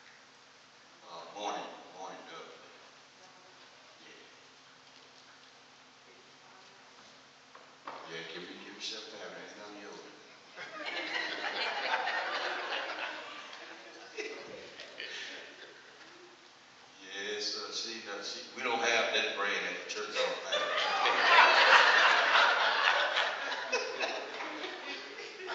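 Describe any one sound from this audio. A man preaches through a microphone with rising animation in a large echoing hall.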